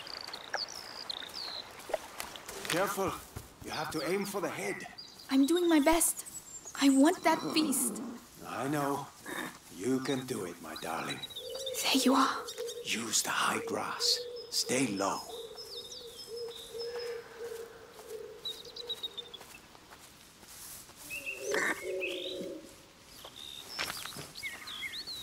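Footsteps rustle quickly through dry leaves and tall grass.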